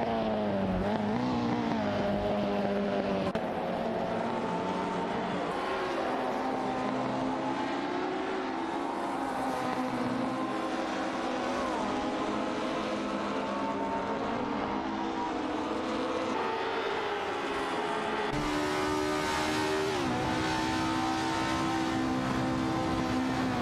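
A racing car engine roars loudly, rising in pitch and dropping with each gear change.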